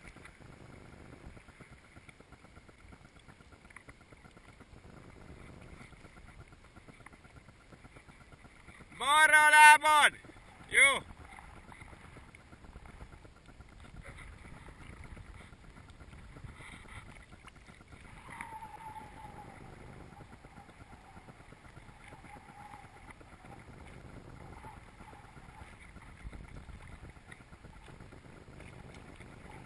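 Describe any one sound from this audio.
Small waves slosh and lap close by.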